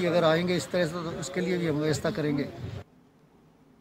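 A man speaks close into a microphone.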